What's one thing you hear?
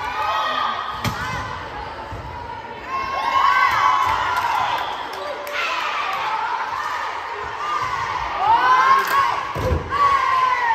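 A volleyball is struck with a loud slap.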